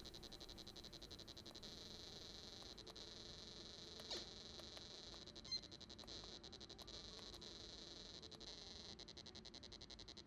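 Small push buttons click under fingers.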